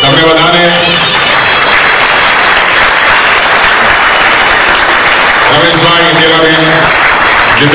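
A crowd claps steadily and loudly.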